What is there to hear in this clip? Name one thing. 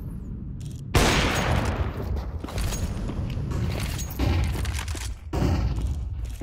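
A rifle fires sharp, booming shots that echo.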